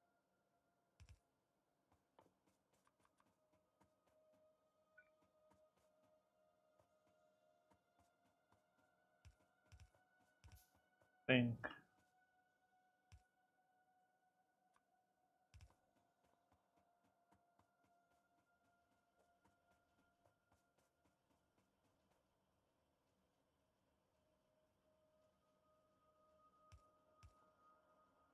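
Objects are placed with short clicks and thuds.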